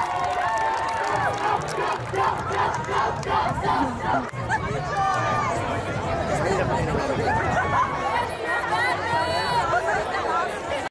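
Pop music with singing plays loudly through outdoor loudspeakers.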